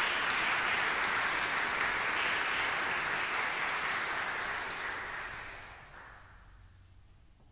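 An audience applauds in a large echoing hall and the applause fades away.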